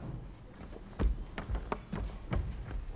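Footsteps run across a stage floor.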